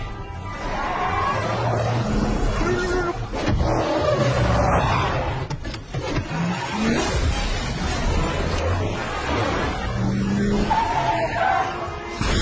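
A pickup truck's engine revs loudly.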